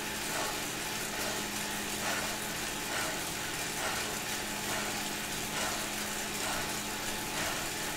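An indoor bike trainer whirs steadily with a rhythmic pulse.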